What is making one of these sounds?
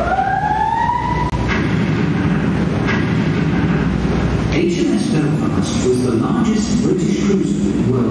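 A boat's engine rumbles steadily.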